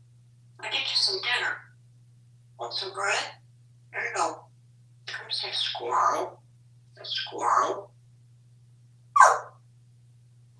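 A parrot chatters and mimics speech in short bursts close by.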